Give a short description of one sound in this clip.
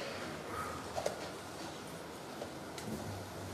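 A wooden chess piece is set down on a wooden board with a soft click.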